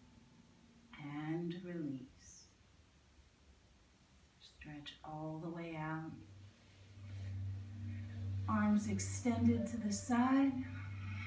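A young woman speaks calmly nearby.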